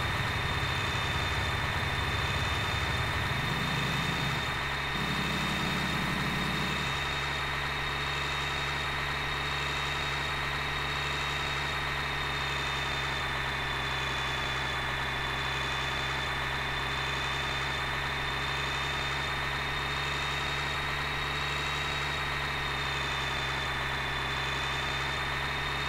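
A truck engine hums steadily as it drives.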